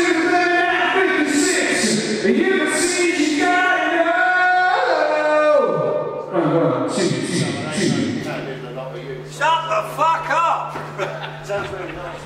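A man sings loudly through a microphone and loudspeakers in a large echoing hall.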